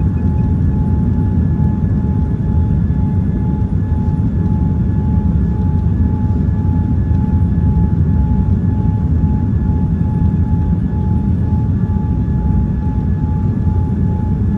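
A steady whine from the engines hums over the roar.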